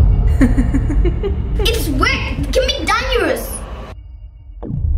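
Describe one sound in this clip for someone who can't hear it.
A young girl speaks with animation nearby.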